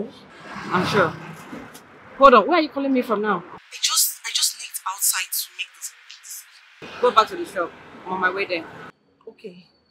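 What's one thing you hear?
A young woman talks on a phone with animation, close by.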